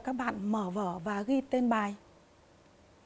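A woman speaks clearly and calmly into a microphone.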